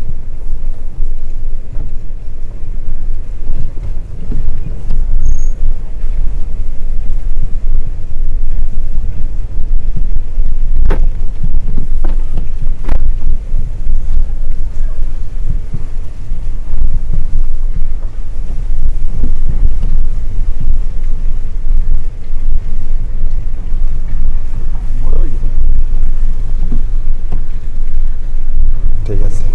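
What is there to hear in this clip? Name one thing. Rain patters on a car's windows.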